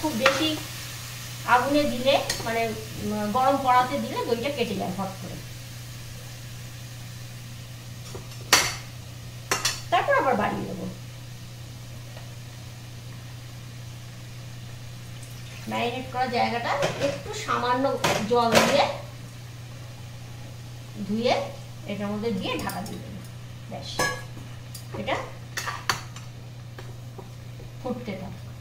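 A metal spatula scrapes and stirs in a pan.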